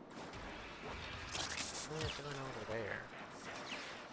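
An energy weapon fires with short zapping blasts.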